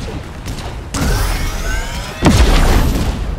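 A pickaxe swings with a whoosh.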